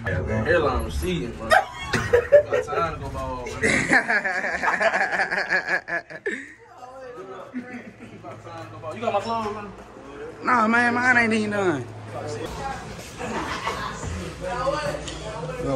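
Young men talk and laugh loudly with animation close by.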